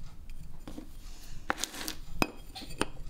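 A glass cutter scores glass with a short scratch.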